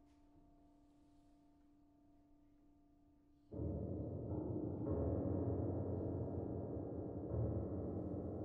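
A grand piano plays, softly at first and then loud and full.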